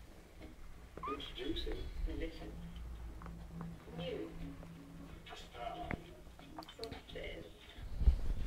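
A kitten mews close by.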